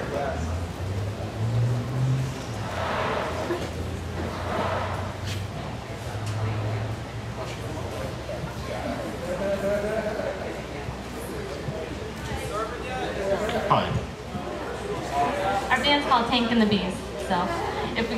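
A keyboard plays through loudspeakers.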